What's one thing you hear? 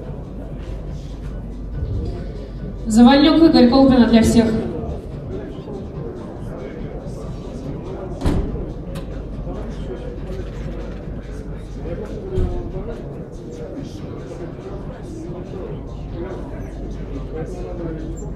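People murmur and talk quietly in the background.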